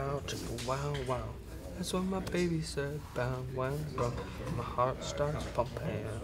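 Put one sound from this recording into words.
Playing cards tap and slide on a soft mat.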